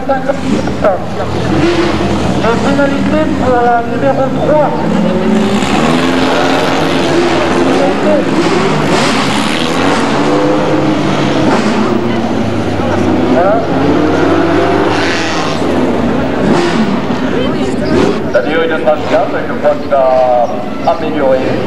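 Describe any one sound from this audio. A race car engine roars as a car speeds past.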